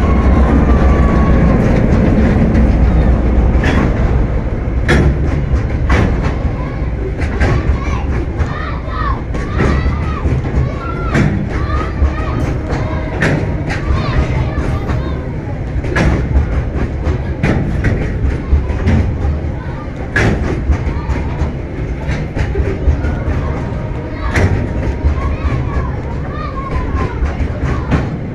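Metal wheels squeal against the rails.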